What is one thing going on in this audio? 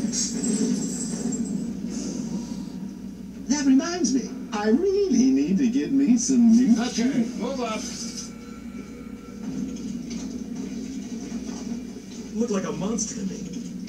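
Fight sounds from a video game play through a television speaker.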